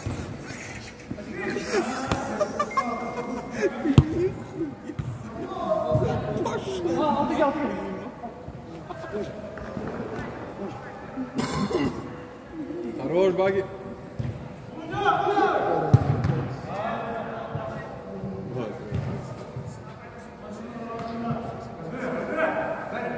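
Men shout to each other during a football game in a large echoing indoor hall.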